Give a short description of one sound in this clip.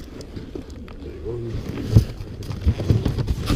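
Cardboard rustles and crinkles as a box flap is pushed about.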